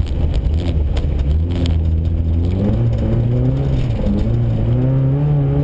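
A car engine revs hard and rises and falls in pitch, heard from inside the car.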